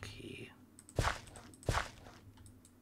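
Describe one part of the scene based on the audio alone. A hoe thuds into soil a few times.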